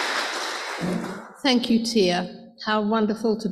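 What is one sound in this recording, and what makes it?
An elderly woman speaks into a microphone with good humour.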